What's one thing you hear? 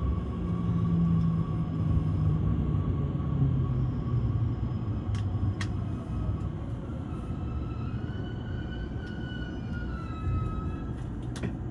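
A train rolls along the platform with a low rumble and slows down.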